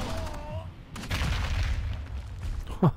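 A rock explosion booms and crumbles.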